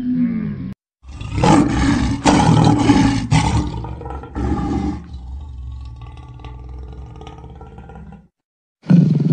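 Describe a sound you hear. A lion roars loudly and repeatedly.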